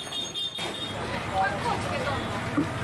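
Juice pours and splashes into a metal cup.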